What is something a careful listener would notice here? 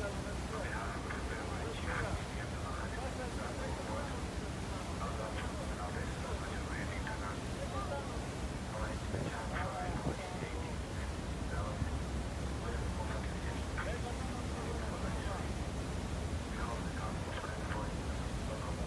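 Water splashes and churns beside a moving boat.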